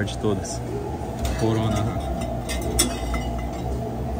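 Glass bottles clink as a hand takes one from a fridge.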